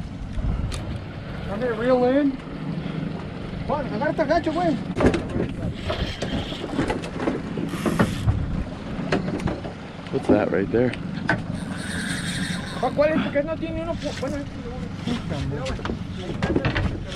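A fishing reel clicks and whirs.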